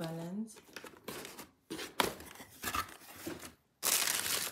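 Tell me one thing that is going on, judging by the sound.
A cardboard box lid scrapes and bumps as it is handled.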